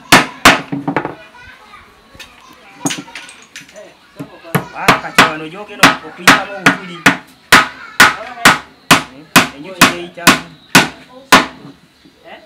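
A hammer drives nails into wood with sharp, ringing blows in a steady rhythm.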